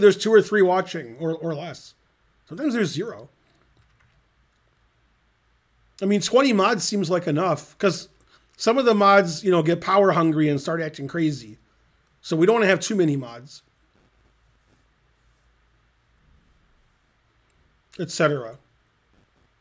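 A middle-aged man talks casually into a close microphone, with pauses.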